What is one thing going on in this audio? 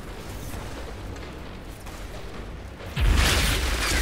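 Wind howls through a snowstorm.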